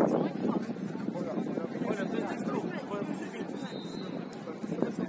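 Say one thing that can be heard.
Several young women talk together at a distance, outdoors.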